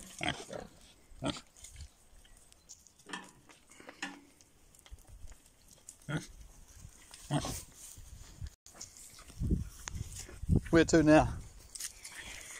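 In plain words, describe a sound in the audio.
Pigs grunt and snort close by.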